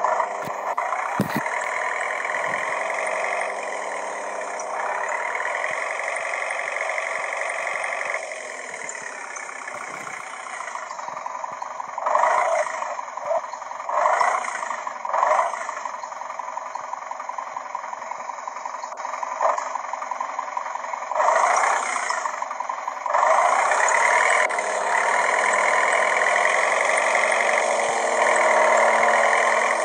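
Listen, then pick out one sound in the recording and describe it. A bus engine hums, revving up and down.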